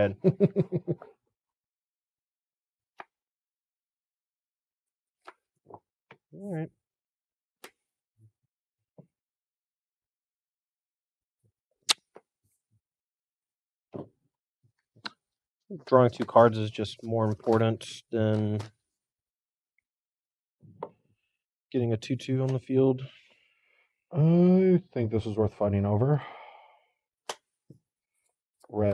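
Playing cards are shuffled and tapped softly on a table.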